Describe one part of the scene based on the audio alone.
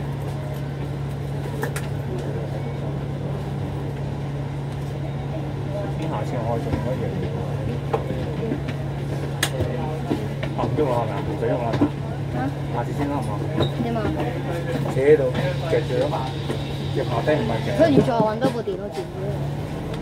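A bus engine hums steadily and low as the bus drives along.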